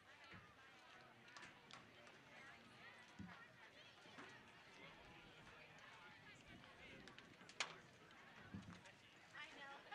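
A crowd of young women chatter and call out outdoors.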